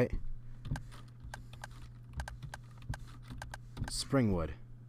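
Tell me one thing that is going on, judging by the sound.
Phone keyboard taps click in quick succession.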